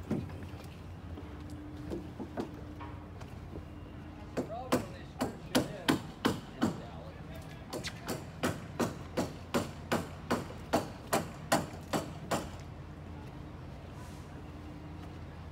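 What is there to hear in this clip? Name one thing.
Water laps gently against dock posts.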